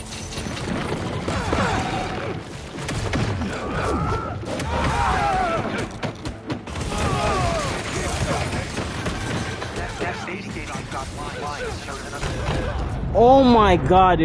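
Punches, blasts and crashes sound in a fast fight.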